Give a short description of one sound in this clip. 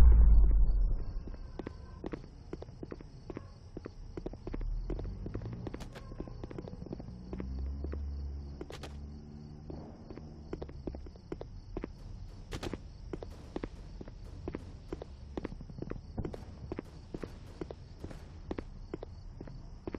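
Footsteps tap steadily on a wooden floor.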